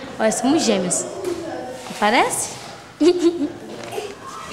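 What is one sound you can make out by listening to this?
A young boy speaks cheerfully and close by.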